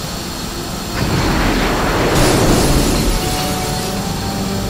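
Glass shatters loudly and crashes down.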